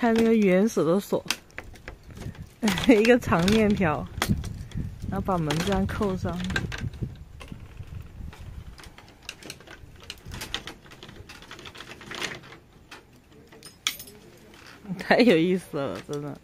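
A metal chain rattles and clinks against a lock.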